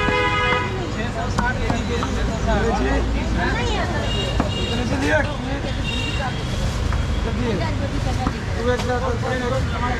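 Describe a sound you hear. Many voices chatter nearby, outdoors in a busy crowd.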